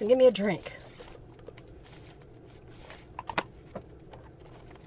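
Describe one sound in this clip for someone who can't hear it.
Paper rustles and taps softly under hands.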